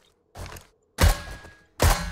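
A rifle fires a sharp, loud shot.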